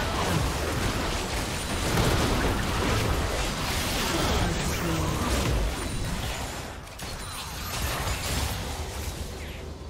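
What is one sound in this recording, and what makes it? Magic blasts and impacts burst and crackle during a fast battle.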